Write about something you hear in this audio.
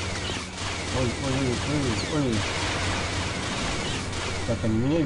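Blaster bolts zip past with sharp, falling whines.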